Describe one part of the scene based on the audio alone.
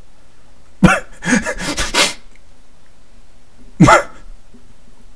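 A young man speaks loudly and animatedly into a close microphone.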